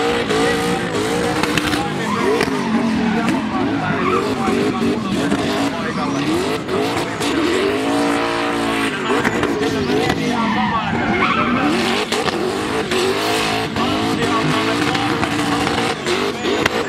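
Tyres screech on asphalt as a car drifts.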